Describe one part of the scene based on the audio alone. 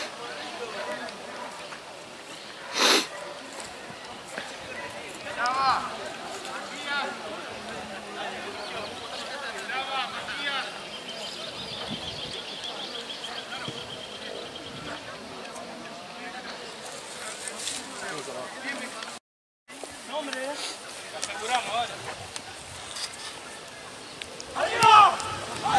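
Young men shout to one another outdoors.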